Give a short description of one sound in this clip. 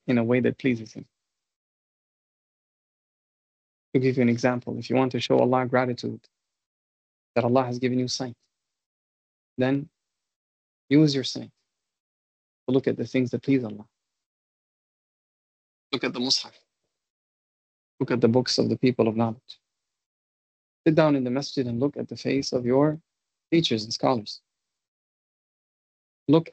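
A man speaks calmly in short phrases with pauses, heard through an online call.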